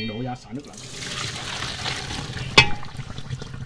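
Hot water pours and splashes into a metal strainer.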